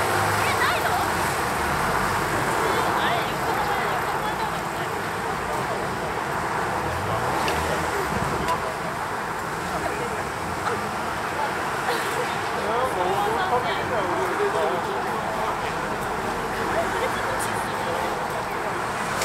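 A crowd chatters outdoors in a steady murmur.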